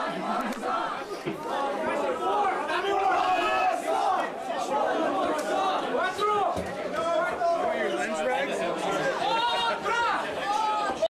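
Young men in a crowd shout and talk close by.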